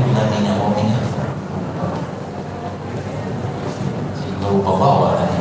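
A man speaks into a microphone, heard through a loudspeaker in an echoing room.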